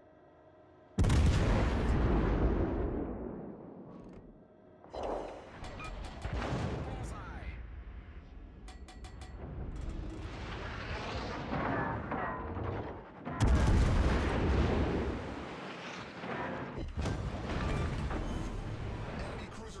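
Heavy ship guns fire with loud, deep booms that roll away.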